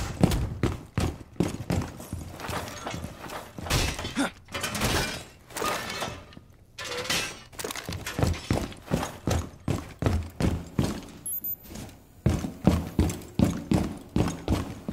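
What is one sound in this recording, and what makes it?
Footsteps thud steadily across a wooden floor.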